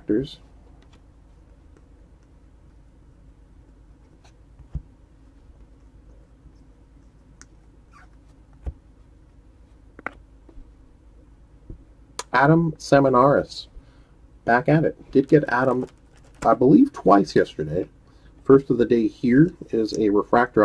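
Trading cards softly flick and slide against each other as they are sorted by hand.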